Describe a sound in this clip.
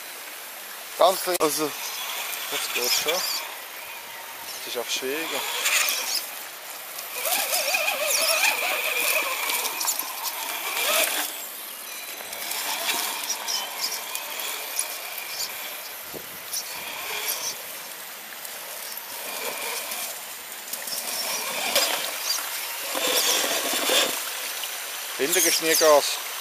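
A small electric motor whines in bursts as a toy car crawls along.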